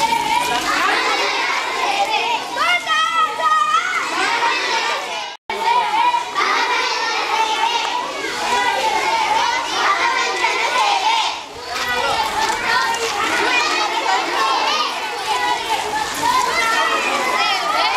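Children chant together.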